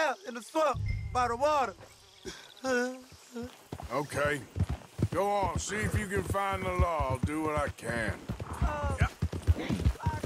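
A man speaks calmly from close by.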